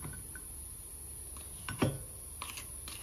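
Chopped garlic drops into a glass cup.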